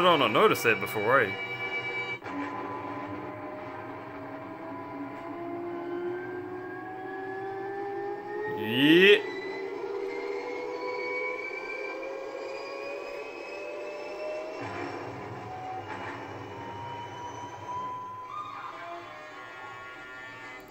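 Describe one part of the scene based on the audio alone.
Music plays from a television loudspeaker.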